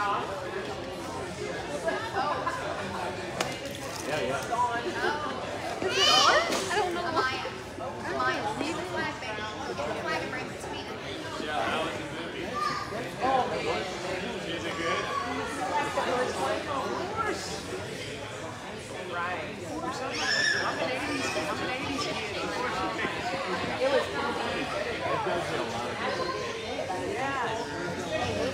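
Several women chat and laugh close by.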